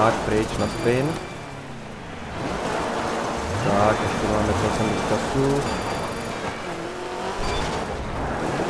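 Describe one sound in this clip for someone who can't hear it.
A man talks with animation into a headset microphone.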